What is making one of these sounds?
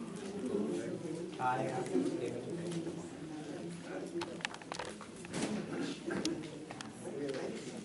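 Papers rustle on a table.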